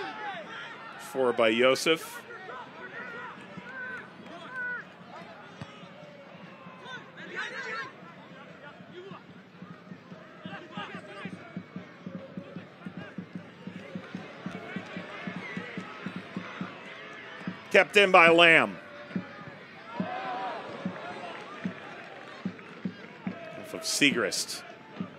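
A crowd cheers and murmurs in an outdoor stadium.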